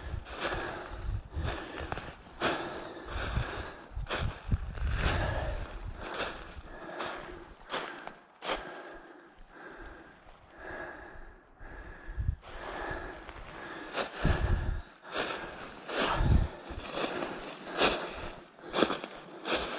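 Footsteps crunch and rustle through dry fallen leaves at a steady walking pace.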